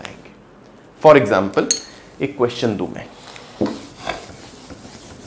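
A young man speaks clearly and with emphasis, close by.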